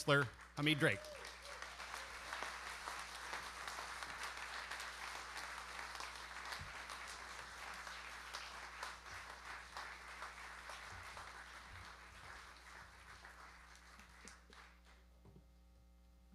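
An audience applauds in a hall, and the applause slowly dies away.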